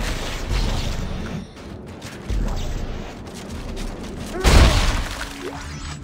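A plasma gun fires with a sharp crackling blast.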